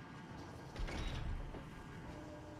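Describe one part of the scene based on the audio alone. A heavy wooden door rattles and thumps against its lock.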